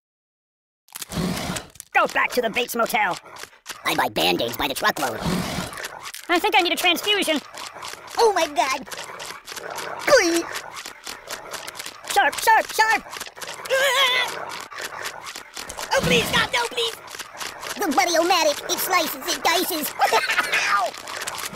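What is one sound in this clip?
Small cartoon dinosaurs screech and growl in a game.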